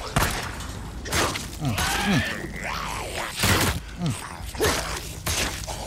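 A zombie snarls and groans.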